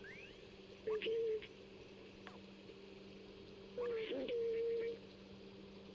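A robot chirps in short electronic beeps.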